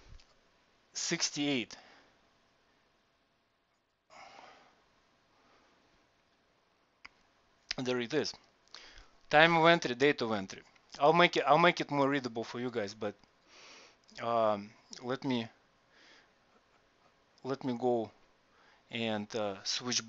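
A man speaks calmly and explains into a headset microphone, with pauses.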